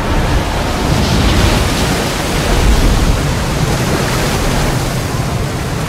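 Water splashes and crashes as a giant creature surges out of the sea.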